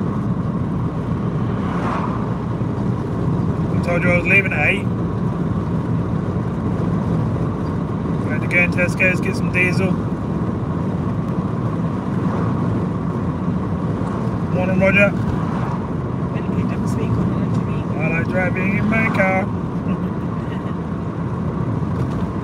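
Tyres roll steadily on the road surface.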